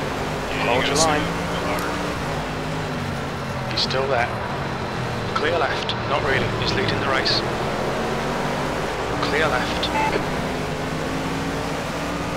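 A racing car engine drones steadily, rising and falling as the car speeds up and slows down.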